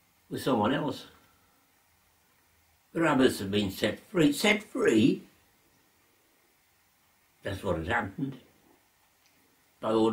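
An elderly man speaks slowly and calmly close by, with long pauses.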